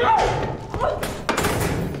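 A young woman shouts in alarm.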